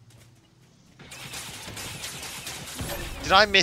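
A treasure chest opens with a bright shimmering sound.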